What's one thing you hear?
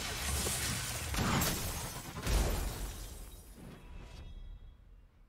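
A magical burst whooshes and roars loudly, then fades.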